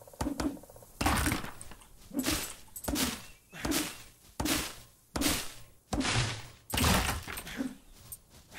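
Heavy blows thud again and again in quick succession.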